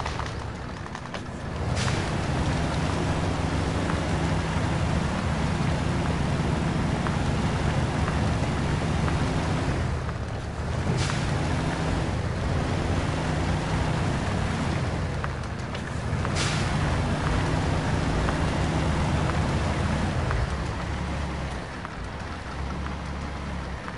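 A truck engine roars and strains as it climbs through mud.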